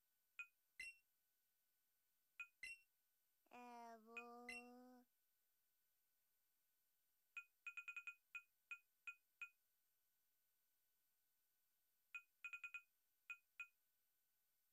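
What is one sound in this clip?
Short electronic menu blips sound in quick bursts.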